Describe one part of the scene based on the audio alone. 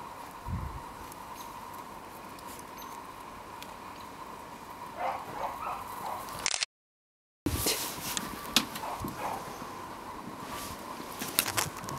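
Snow crunches under a dog's paws.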